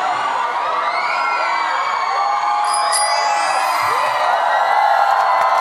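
A band plays a song on stage through loudspeakers.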